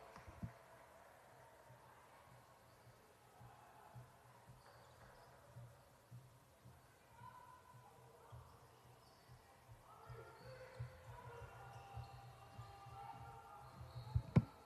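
A basketball bounces on a wooden floor in a large echoing gym.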